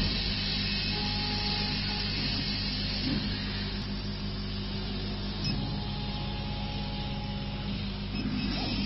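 Buttons on a control panel click and beep.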